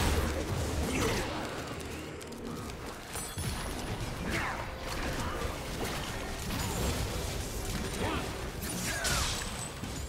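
Game spell effects whoosh and clash as characters fight.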